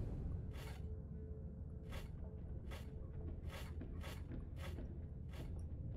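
Metal gear racks click as they slide together.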